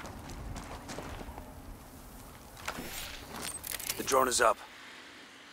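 Boots crunch on a dirt path.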